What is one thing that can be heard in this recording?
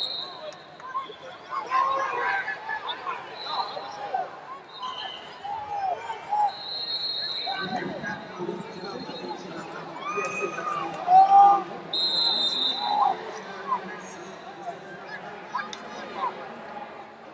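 A large crowd murmurs and calls out in a big echoing hall.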